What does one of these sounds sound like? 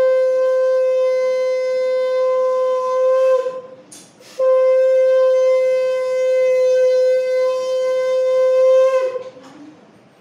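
A boy blows a conch shell with a loud, steady, piercing tone, pausing briefly for breath.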